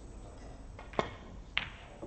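A cue strikes a ball with a sharp click.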